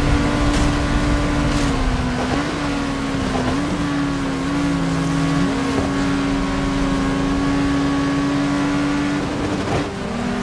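A racing car engine roars steadily, shifting pitch as it changes gear.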